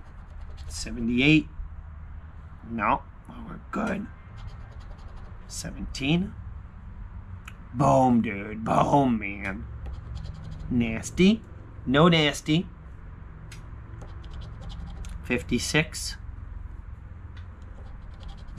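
A coin scratches across a scratch card.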